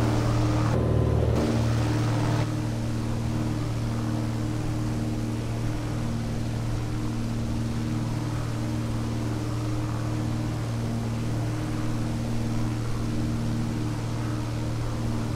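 A propeller engine drones steadily, with a low hum throughout.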